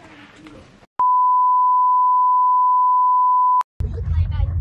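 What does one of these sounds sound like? A steady high beep tone sounds.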